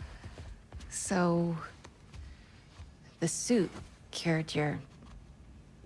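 A young woman speaks softly and gently, close by.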